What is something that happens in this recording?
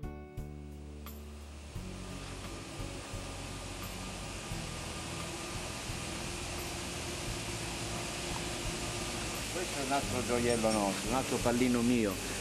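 Steam hisses steadily from a locomotive.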